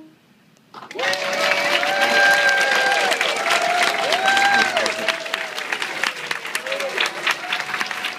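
People in the audience cheer and whoop.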